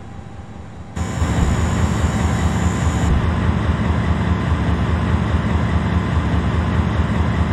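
Heavy rain drums steadily on a windshield.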